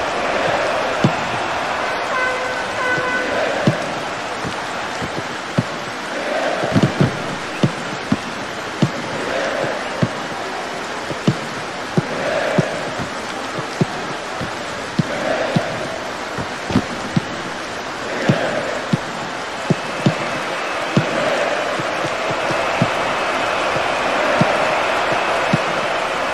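A football is kicked again and again with dull thuds.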